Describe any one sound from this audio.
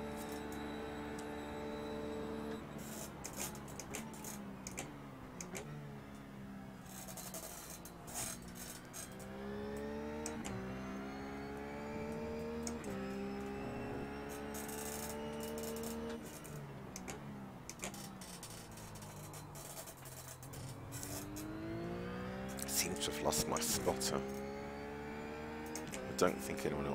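A racing car engine accelerates through the gears.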